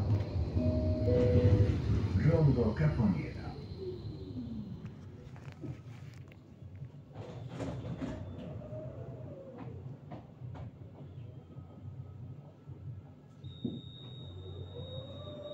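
A tram rumbles and hums as it rolls slowly to a stop.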